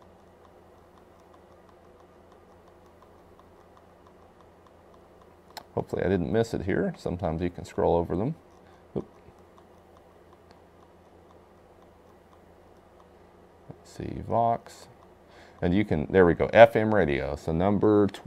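Buttons click softly on a handheld radio.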